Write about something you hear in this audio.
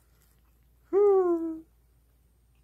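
A kitten meows once, short and high.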